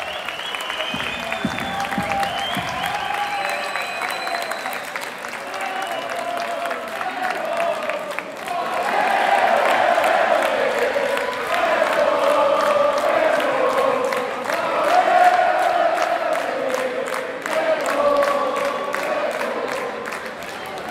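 A rock band plays loudly through speakers in a large echoing hall.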